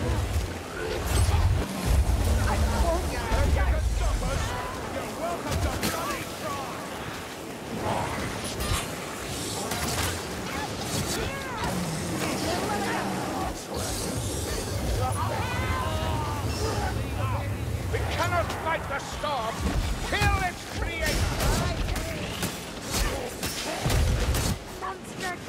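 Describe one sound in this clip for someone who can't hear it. Monsters snarl and growl.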